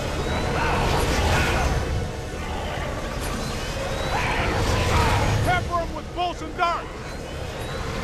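Energy beams crackle and roar as they blast ghosts.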